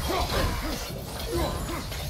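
An axe strikes an enemy with a heavy crunching blow.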